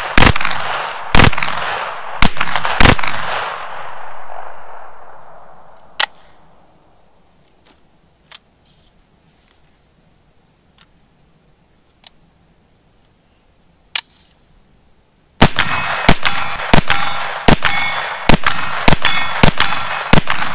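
A rifle fires single shots and then rapid bursts outdoors, each shot echoing across open ground.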